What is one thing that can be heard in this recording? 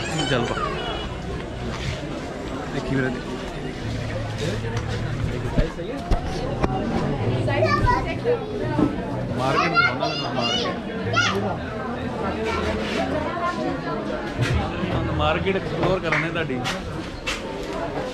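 A crowd murmurs all around in a busy indoor space.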